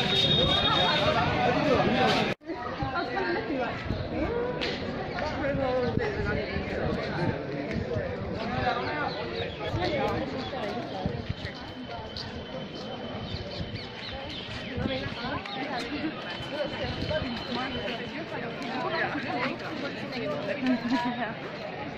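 A crowd of men and women chatters nearby, outdoors.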